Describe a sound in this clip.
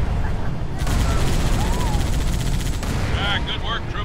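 A tank cannon fires with heavy booms.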